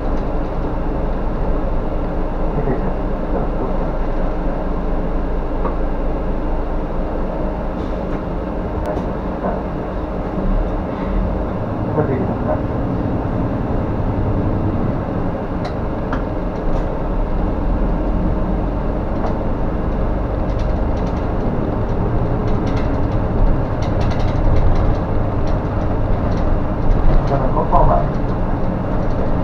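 A bus rattles and creaks as it rolls over the road.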